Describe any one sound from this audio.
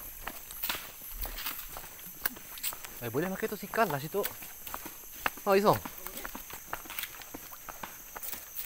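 Footsteps scuff and tap along a stone path.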